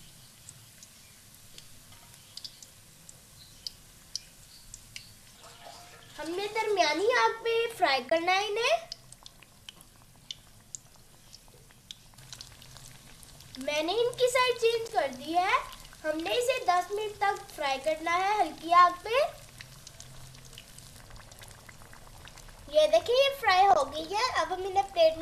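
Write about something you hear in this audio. Hot oil sizzles and crackles steadily around frying food.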